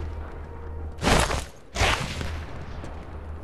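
A wooden door swings shut with a rushing scrape.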